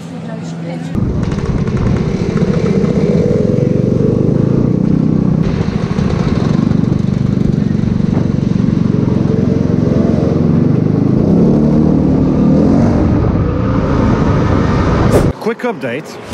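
Scooter engines drone steadily.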